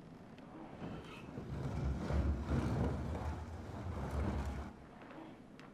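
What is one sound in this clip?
A heavy wooden crate scrapes and rumbles as it is pushed.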